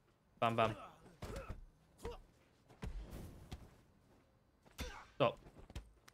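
Punches thud and smack in a brawl.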